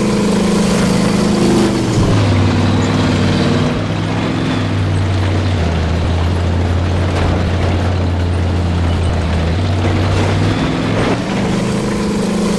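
A tank engine rumbles and drones steadily, shifting pitch as it drives.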